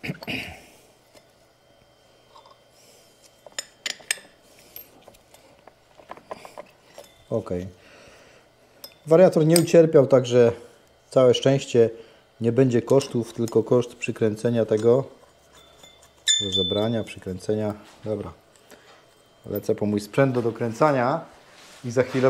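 Metal tools clink softly against a scooter.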